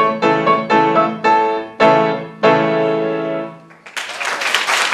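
A piano plays loud chords.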